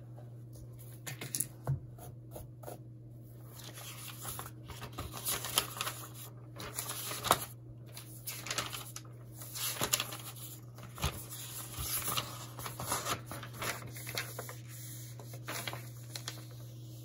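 Paper pages rustle and flip as a notebook is leafed through.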